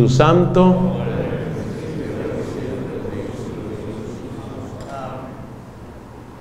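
A middle-aged man speaks calmly into a microphone, his voice echoing through a loudspeaker in a reverberant room.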